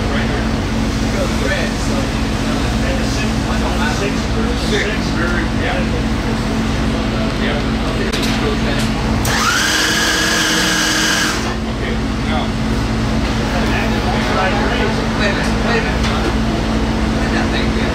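Several men talk casually nearby.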